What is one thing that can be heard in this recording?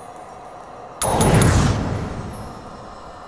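A magical whoosh rings out as cards vanish.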